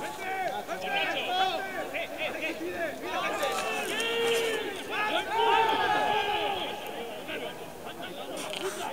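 Several men on a rugby field shout to each other outdoors, some way off.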